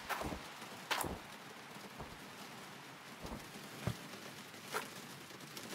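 Plastic buckets knock and thud as they are set down.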